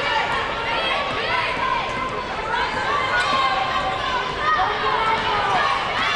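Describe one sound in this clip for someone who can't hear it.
A basketball bounces on a wooden court as a player dribbles.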